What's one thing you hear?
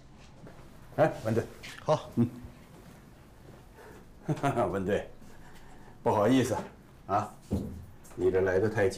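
Men talk in a quiet room.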